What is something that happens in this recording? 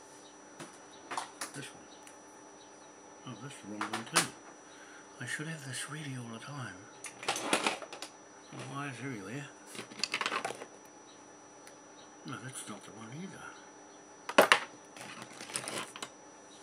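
Small objects click and knock as they are handled.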